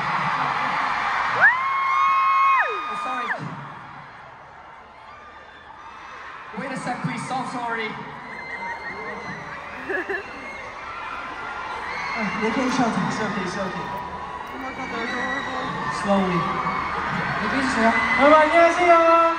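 A large crowd screams and cheers in a big echoing arena.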